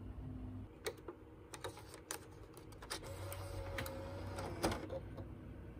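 A disc slides into a game console's slot with a few clicks.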